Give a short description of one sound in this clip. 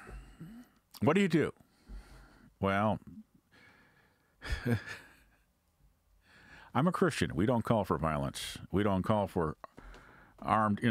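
An elderly man speaks calmly and closely into a microphone, in short phrases with pauses.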